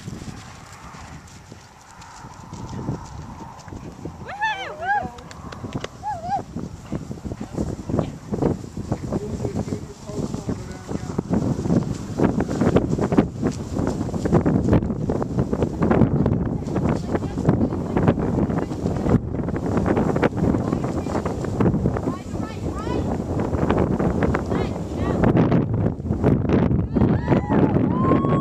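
A horse gallops on grass with dull, thudding hoofbeats that come closer and then fade.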